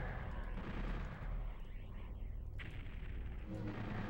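A fireball whooshes past in a video game.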